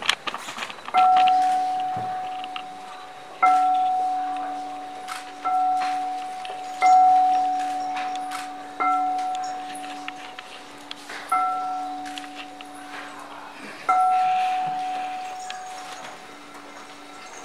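A metal singing bowl is struck and rings out, fading slowly.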